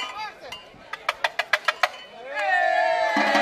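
A drummer taps a quick count on a drum.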